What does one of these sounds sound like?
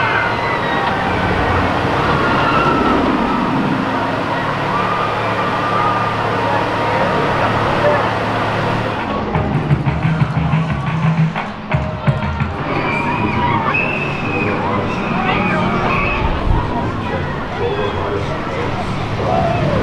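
A roller coaster train rumbles and roars along its steel track.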